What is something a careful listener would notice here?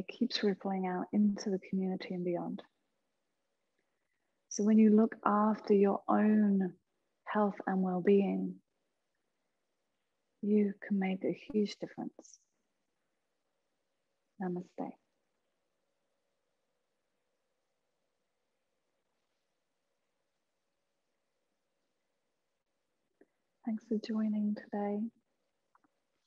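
A woman speaks calmly and softly into a close microphone, pausing between phrases.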